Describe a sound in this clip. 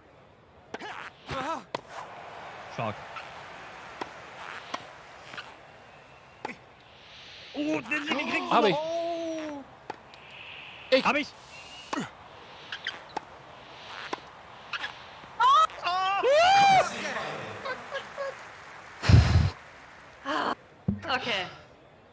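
Tennis balls are struck sharply with rackets, back and forth.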